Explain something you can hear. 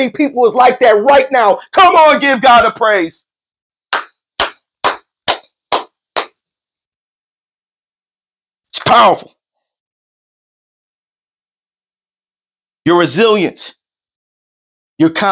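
A man preaches loudly and passionately into a microphone, in short bursts with pauses.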